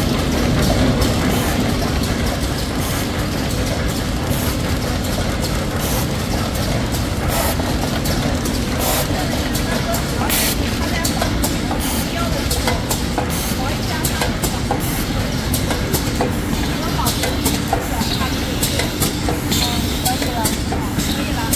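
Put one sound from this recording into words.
Packaging machinery runs with a steady clattering hum.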